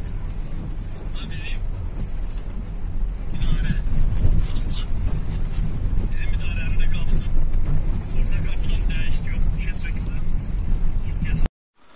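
Windscreen wipers swish across wet glass.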